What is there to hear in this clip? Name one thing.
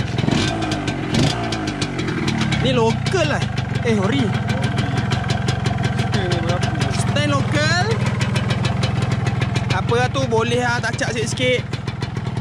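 A motorcycle engine idles with a steady, rapid putter close by.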